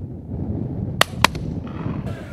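A shotgun fires two loud shots in quick succession.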